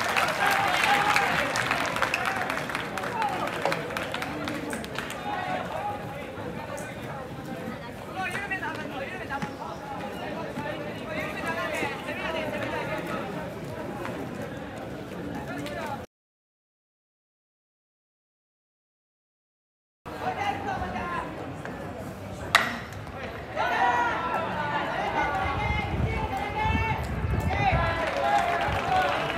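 A crowd cheers and chants loudly outdoors.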